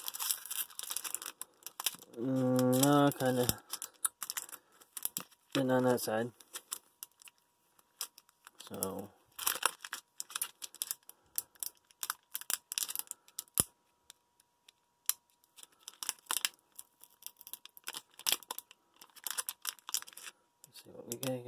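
Hands crinkle and tear open a foil card pack.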